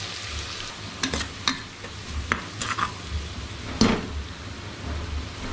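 A metal spoon knocks and scrapes against a pot.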